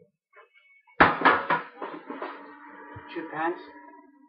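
A metal tray clatters and scrapes as it is handled.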